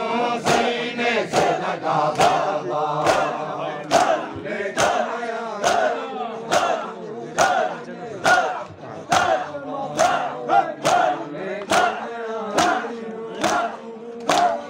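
Men chant loudly together in a steady rhythm.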